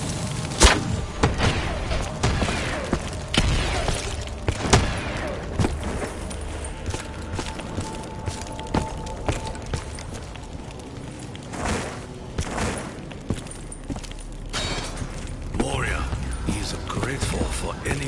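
Crossbow bolts fire with sharp twangs and thuds.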